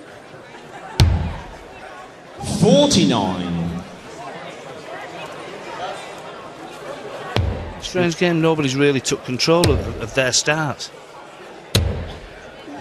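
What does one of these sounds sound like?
Darts thud into a board.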